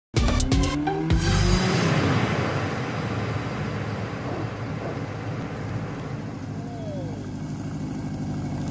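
A motorcycle engine roars and draws closer.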